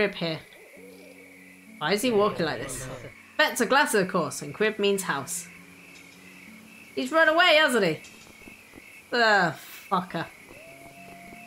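A young woman talks with animation through a microphone, close by.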